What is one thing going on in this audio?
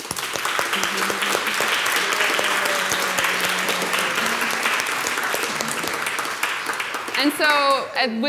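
A crowd applauds in an echoing hall.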